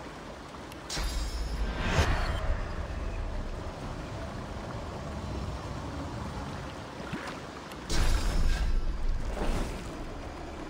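Spells burst with loud booming impacts.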